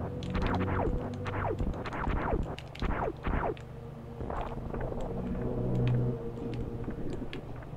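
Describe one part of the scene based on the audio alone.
Retro video game music plays steadily.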